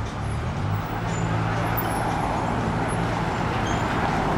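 A car engine hums close by as a taxi drives past.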